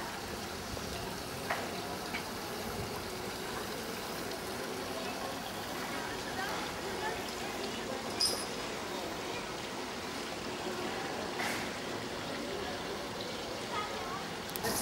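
A crowd murmurs in a wide open square outdoors.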